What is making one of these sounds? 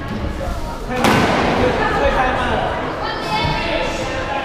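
Young men talk nearby in an echoing hall.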